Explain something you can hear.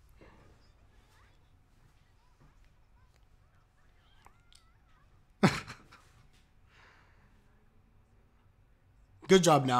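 A young man laughs softly close to a microphone.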